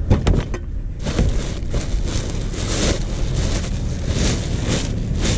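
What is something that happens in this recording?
A plastic bin bag rustles and crinkles as it is pressed down.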